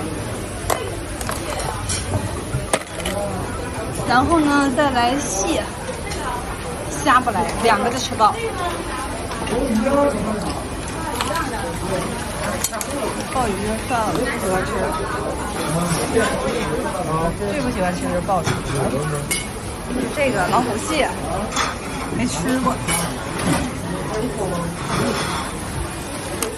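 A crowd of people chatter nearby in a busy, echoing room.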